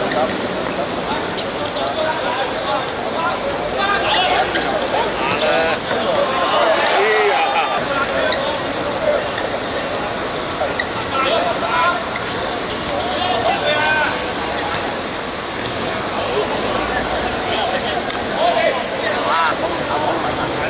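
Players shout to each other across an outdoor court.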